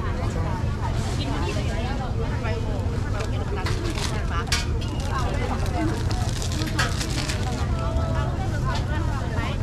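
A lively crowd chatters all around outdoors.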